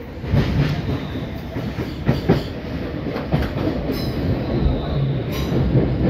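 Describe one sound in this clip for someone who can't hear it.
A passing train rushes by close outside.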